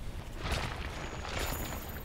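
A large beast roars.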